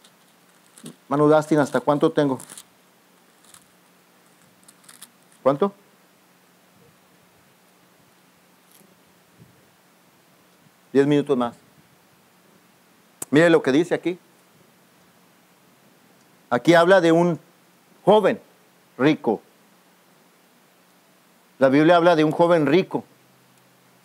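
A man speaks slowly through a microphone, with long pauses.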